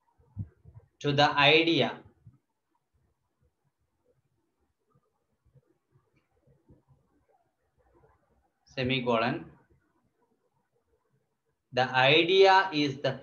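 A man speaks in short, calm bursts close to a microphone, with long pauses between them.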